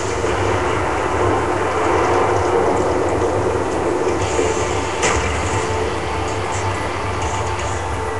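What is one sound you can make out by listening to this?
Gunshots and game sounds play loudly through a television speaker.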